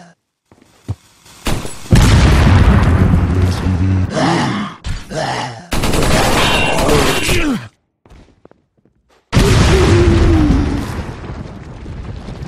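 A pistol fires shots in an echoing stone hall.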